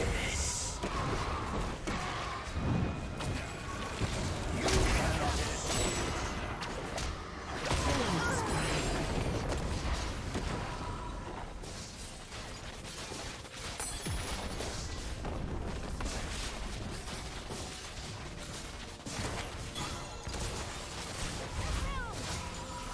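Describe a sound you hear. Video game spell effects whoosh and crackle in quick bursts during a fight.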